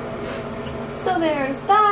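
A young woman speaks up close, with animation.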